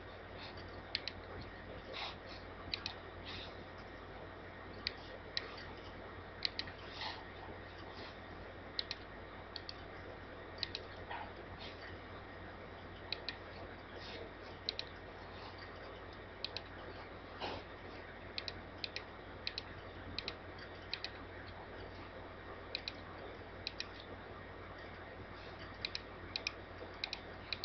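A computer mouse clicks sharply, now and then.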